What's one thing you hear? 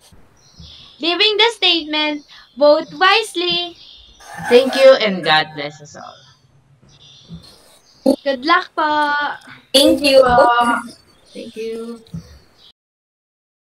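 A young woman talks with animation over an online call.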